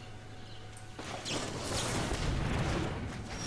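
A magical whoosh and shimmer from a game plays.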